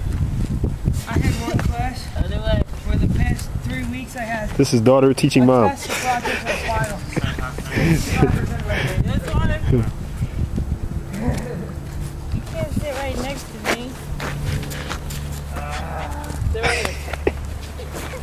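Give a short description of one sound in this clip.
A woman speaks encouragingly nearby.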